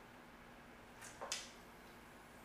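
A spoon clinks against a small glass jar.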